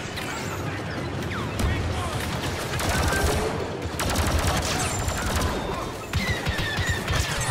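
Blaster rifles fire rapid bursts of zapping shots.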